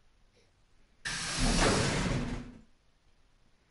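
A sliding door whooshes open.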